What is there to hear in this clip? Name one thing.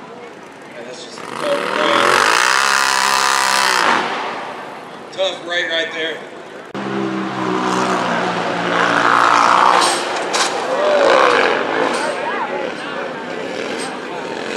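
A rally car engine roars loudly at high revs.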